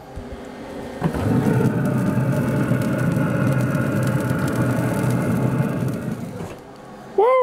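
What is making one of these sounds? Fish sizzles on a hot grill.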